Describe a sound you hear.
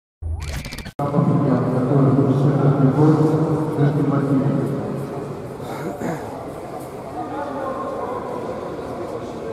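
A man calls out commands in a large echoing hall.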